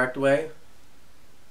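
A young man sings out a short, loud note close by.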